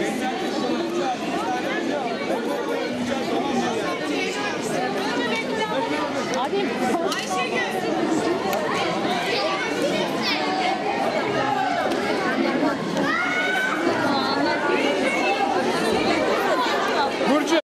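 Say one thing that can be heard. A large crowd of women and children chatters loudly all around.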